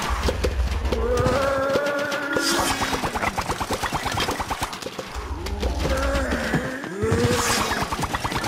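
Rapid popping shots fire again and again.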